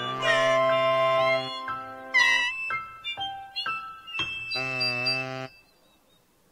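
Toy birds chirp and whistle in bright musical notes.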